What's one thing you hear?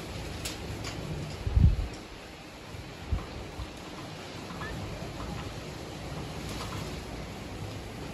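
A marker squeaks and taps faintly on a whiteboard.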